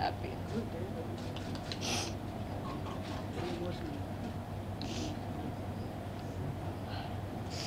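A young woman sobs quietly.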